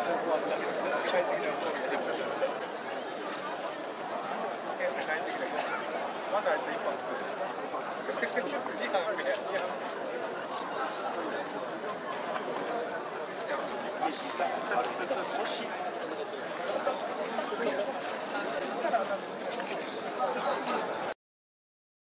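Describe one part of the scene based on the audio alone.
A crowd of men and women murmurs and chatters outdoors.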